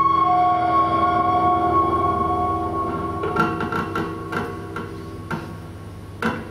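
A flute plays long, held notes.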